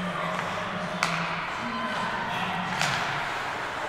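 A hockey stick smacks a puck with a sharp crack.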